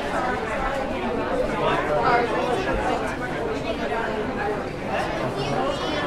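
A crowd of men and women chatter all around in a busy echoing hall.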